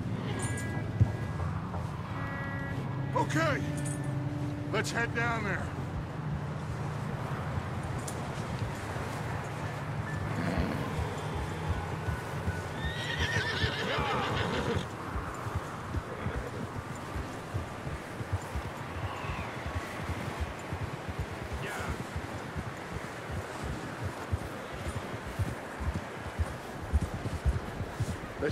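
Horses' hooves crunch steadily through snow.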